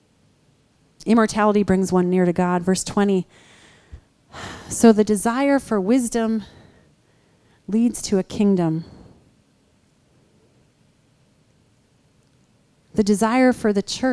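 A woman speaks calmly into a microphone over a loudspeaker, with pauses between phrases.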